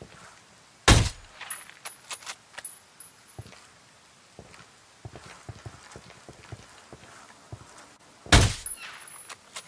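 A suppressed rifle fires two sharp shots.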